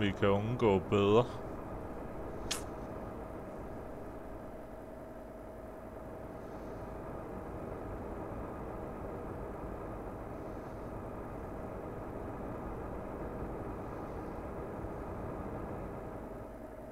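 A truck engine hums steadily on a road.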